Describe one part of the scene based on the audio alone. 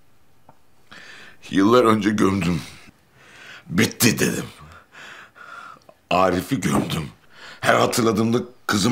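A middle-aged man speaks tearfully close by.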